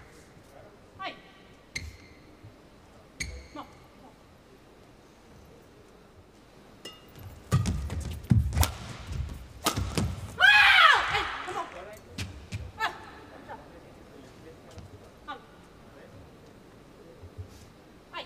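A shuttlecock is struck sharply with a racket, again and again.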